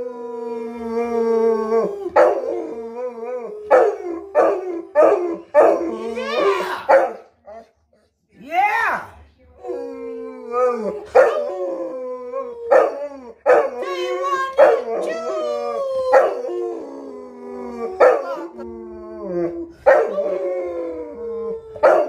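A woman howls along in a high voice, close by.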